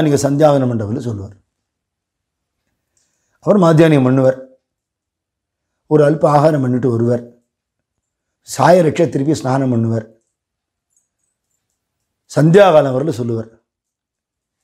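An elderly man speaks calmly into a close microphone in short phrases with pauses.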